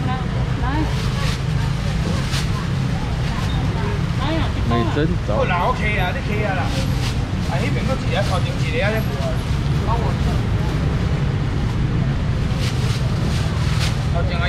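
Young men talk with each other nearby.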